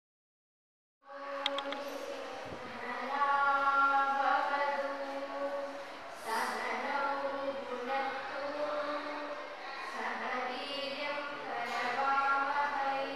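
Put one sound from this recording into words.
A group of young girls sings together into a microphone.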